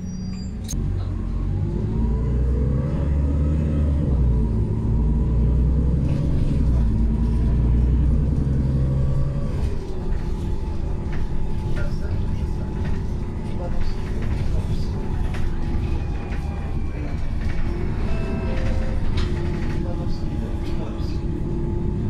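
Loose fittings rattle and clatter inside the bus.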